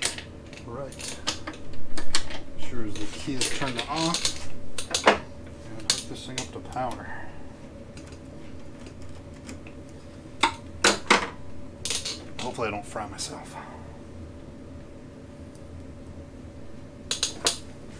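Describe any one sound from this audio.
Small metal parts click and clack.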